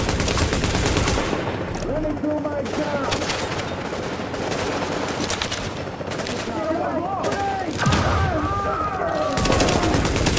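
Rifle shots ring out.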